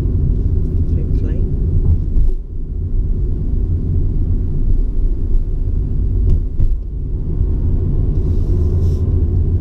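Tyres rumble and hiss on a wet road.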